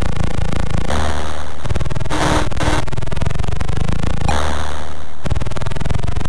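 Electronic water splashes come in bursts.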